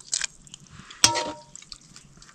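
A metal ladle clinks against a metal pot.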